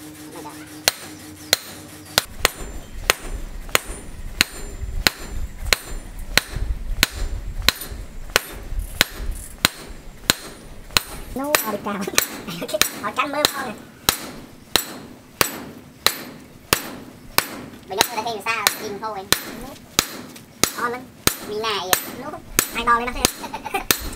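A hammer rings sharply on hot metal on an anvil, blow after blow at a steady pace.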